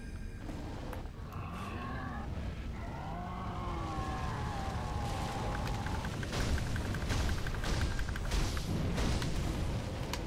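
A huge beast growls and roars.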